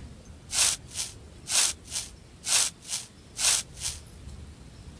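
A saw rasps back and forth through wood in quick strokes.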